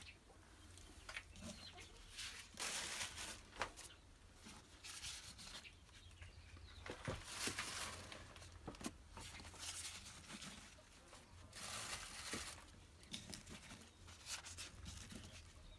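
Eggs clink softly against each other as a hand moves them in straw.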